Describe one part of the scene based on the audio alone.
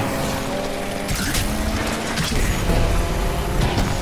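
Car tyres screech on the road.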